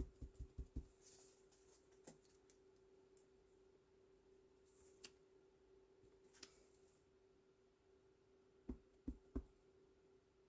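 A clear acrylic stamp block taps down onto paper and an ink pad.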